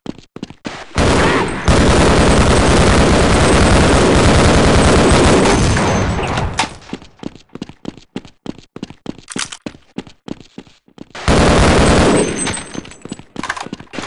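A rifle fires long, rapid bursts.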